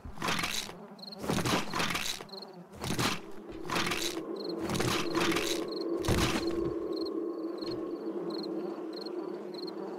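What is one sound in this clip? Footsteps tap across a hard floor.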